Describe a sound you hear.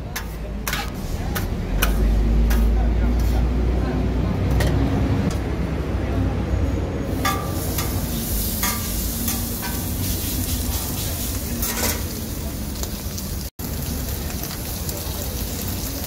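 Food sizzles steadily on a hot griddle.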